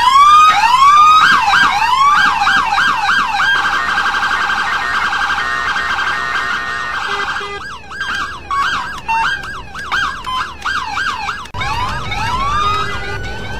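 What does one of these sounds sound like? A police siren wails and yelps, switching between fast and slow sweeps.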